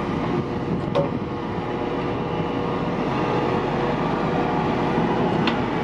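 A heavy truck's diesel engine rumbles steadily nearby.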